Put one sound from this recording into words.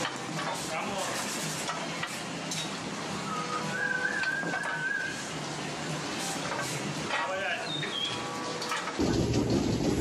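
Metal stalls clank and rattle in a large echoing barn.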